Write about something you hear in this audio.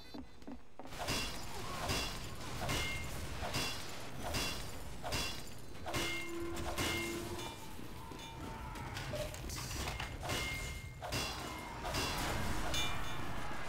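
A metal wrench clangs repeatedly against a machine.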